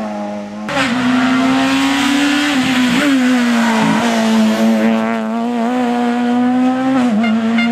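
A rally car engine roars loudly at high revs as the car speeds past.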